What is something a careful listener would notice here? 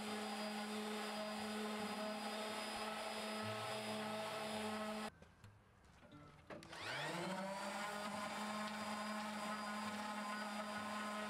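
An electric orbital sander whirs steadily against wood, stops briefly, then spins back up.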